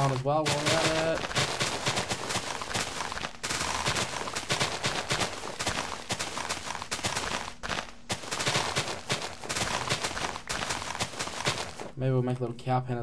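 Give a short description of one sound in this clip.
Grass and earth crunch repeatedly as they are broken.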